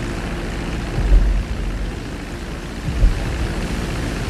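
A plane's hull splashes onto water.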